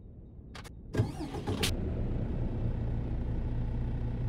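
A truck's diesel engine cranks, starts and settles into a low, steady idle.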